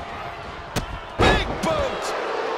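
A body slams heavily onto a wrestling mat with a loud thud.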